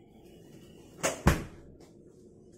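A drawer slides open with a rattle.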